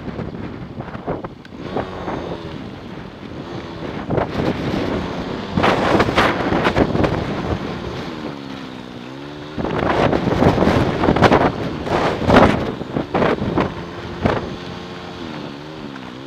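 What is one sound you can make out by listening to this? Wind buffets loudly against the microphone in gusts.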